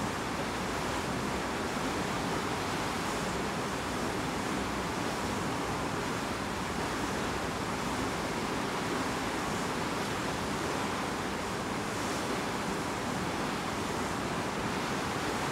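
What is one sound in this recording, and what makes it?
Water rushes and splashes steadily against a moving ship's hull.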